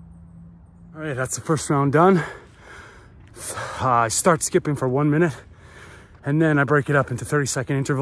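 A middle-aged man speaks up close with animation.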